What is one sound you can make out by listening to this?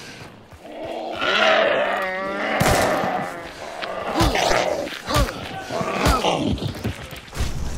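A creature snarls and shrieks up close.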